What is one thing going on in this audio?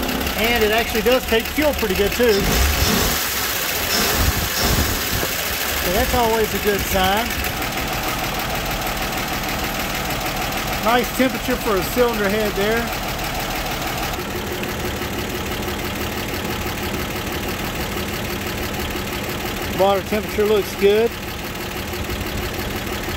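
An engine idles steadily close by.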